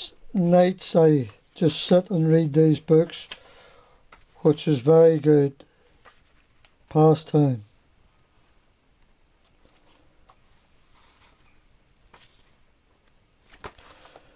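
Paper pages rustle as a book is flipped through.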